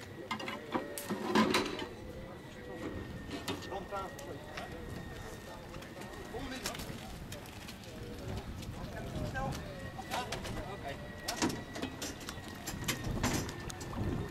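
People talk and murmur in the distance outdoors.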